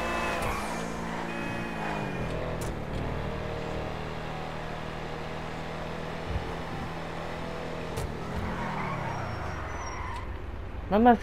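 An off-road SUV engine hums as it drives along a street.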